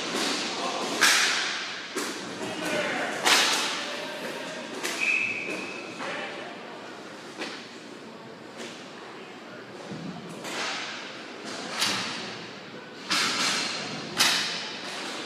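Hockey sticks clack against a ball and the floor.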